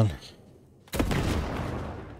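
An explosion roars.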